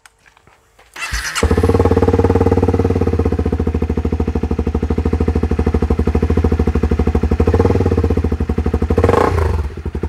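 A motorcycle engine starts and idles with a steady rapid thumping.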